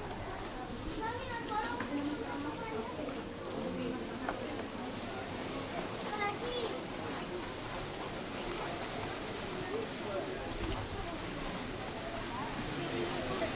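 A crowd of visitors chatters at a distance outdoors.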